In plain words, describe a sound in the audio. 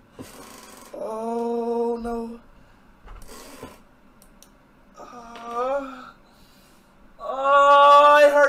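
A young man groans and yells in pain close by.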